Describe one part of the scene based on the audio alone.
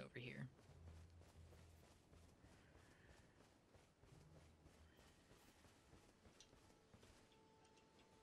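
Footsteps crunch through grass.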